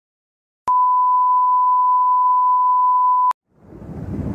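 A steady high test tone beeps.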